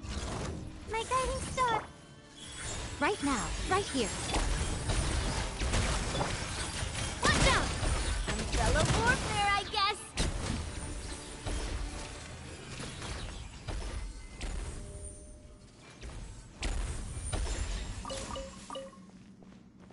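Electric blasts crackle and boom in a fast fight.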